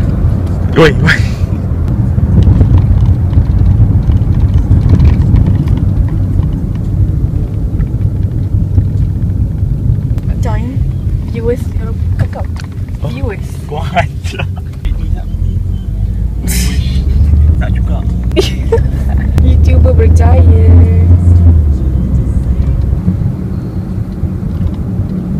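Road noise rumbles inside a moving car.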